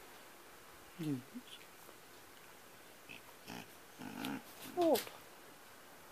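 A small dog yelps and whines up close.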